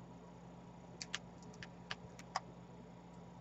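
Beads click softly against each other.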